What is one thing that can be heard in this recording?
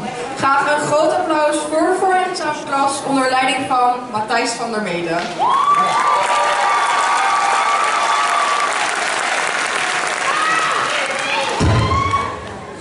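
Two women sing together through loudspeakers in a large hall, ending on a long held note.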